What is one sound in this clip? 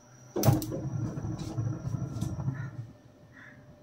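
A gas stove knob clicks as it turns.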